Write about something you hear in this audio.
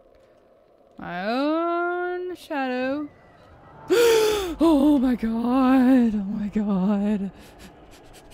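A young woman sings and wails loudly and playfully into a close microphone.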